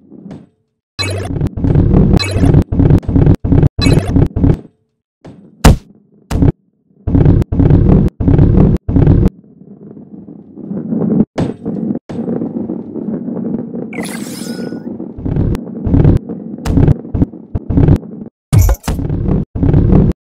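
A spaceship's guns fire in quick repeated bursts.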